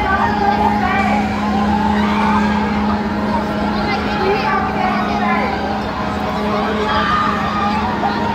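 A fairground ride's machinery hums steadily as it turns.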